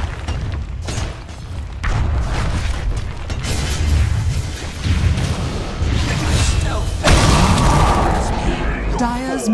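Magic blasts and impacts crash and boom in a fast, loud fight.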